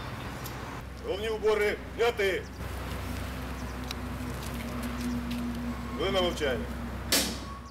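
A man speaks loudly outdoors to a gathering.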